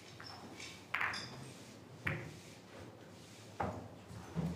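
Snooker balls click together as they are set on the table.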